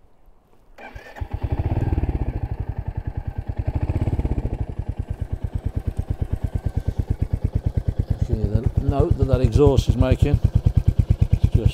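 A motorcycle engine starts and idles with a steady throbbing rumble.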